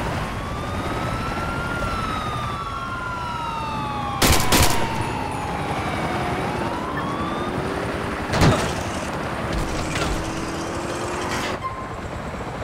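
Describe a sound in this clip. A car engine revs and roars as a car speeds away.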